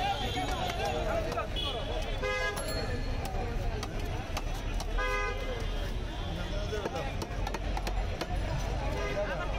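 A knife chops through a large fish on a wooden block.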